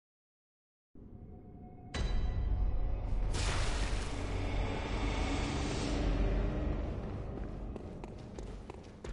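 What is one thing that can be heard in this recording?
Footsteps run quickly across stone.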